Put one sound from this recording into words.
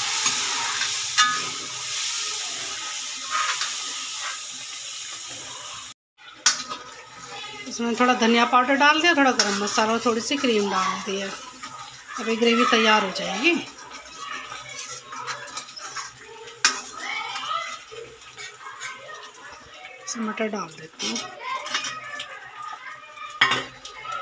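A metal ladle scrapes and clinks against a metal pan.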